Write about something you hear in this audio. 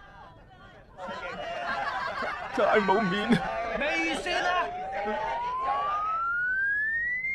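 A man wails and whimpers in distress.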